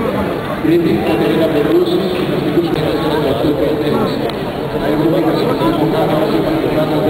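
People murmur and chatter in a large echoing hall.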